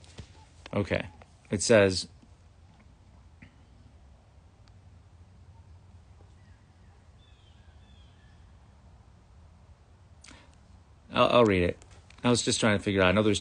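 A man speaks calmly and close to the microphone, with long pauses.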